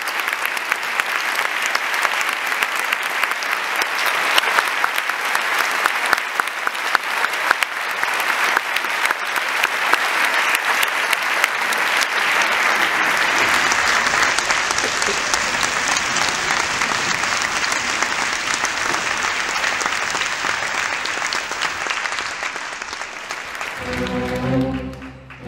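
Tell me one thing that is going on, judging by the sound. An orchestra plays loudly in a large hall.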